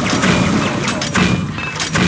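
A shotgun fires with sharp blasts.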